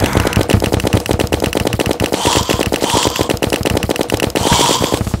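Rapid weapon hits thud and crack in quick succession.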